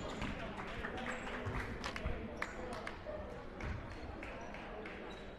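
A basketball bounces on a hardwood floor in a large echoing gym.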